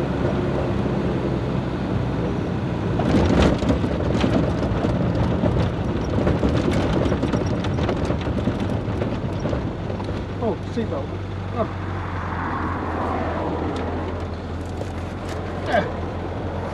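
Wind rushes past an open car.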